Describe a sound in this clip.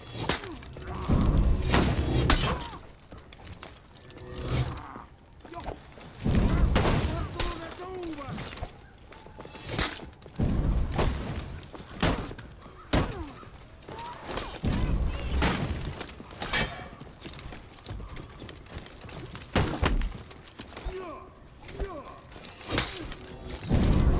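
Heavy blows land with deep thumps.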